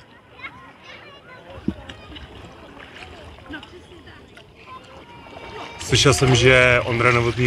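A paddle dips and splashes softly in calm water.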